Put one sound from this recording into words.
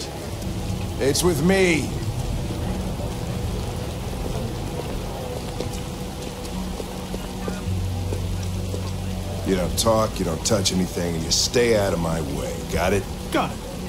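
An older man speaks gruffly and firmly, close by.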